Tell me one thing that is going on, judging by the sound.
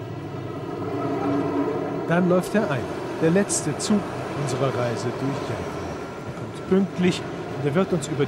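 A train rumbles past close by on the tracks.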